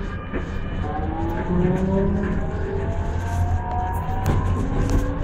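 Car engines rumble in nearby street traffic.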